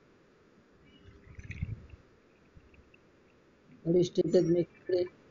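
A liquid pouring sound effect gurgles softly.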